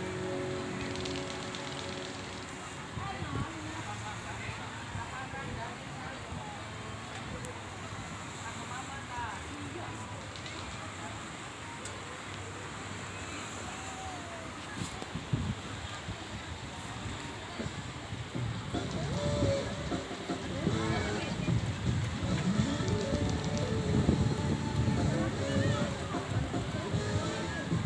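Waves wash steadily onto a beach.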